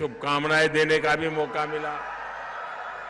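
An elderly man speaks forcefully through a microphone over loudspeakers.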